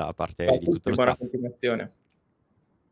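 A man talks with animation through a microphone.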